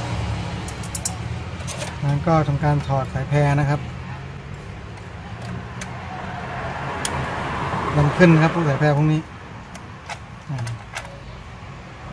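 Plastic tabs click as ribbon cable latches are pried open.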